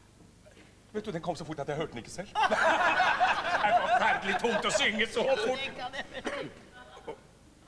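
An elderly man speaks loudly and with animation in a large hall.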